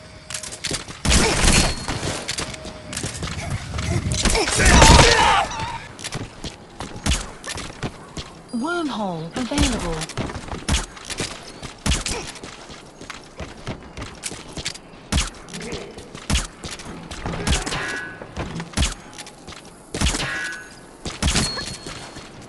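Gunshots crack sharply, one after another.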